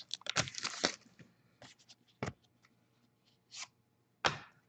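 Cards rustle and flick as they are shuffled through by hand.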